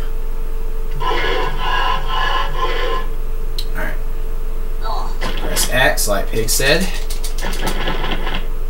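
Cheerful video game sound effects and music play through a television speaker.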